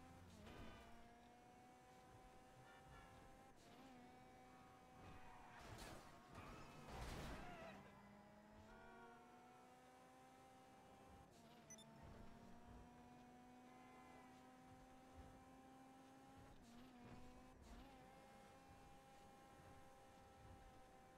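A sports car engine roars steadily, shifting gears as it speeds along.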